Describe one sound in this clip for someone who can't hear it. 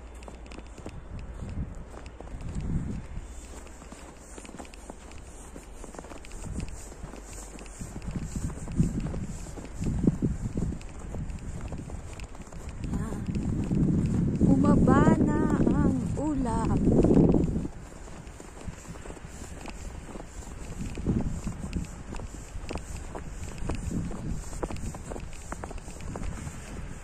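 Wind blusters outdoors against the microphone.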